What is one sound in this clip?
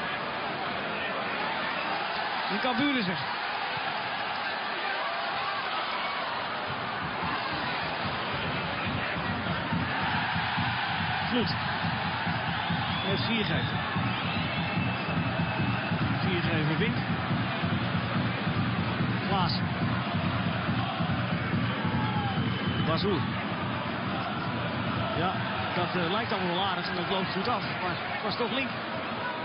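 A large stadium crowd roars and chants steadily, growing louder midway.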